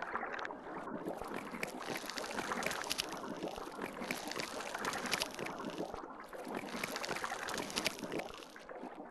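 A shark bites and crunches into prey in sharp bursts.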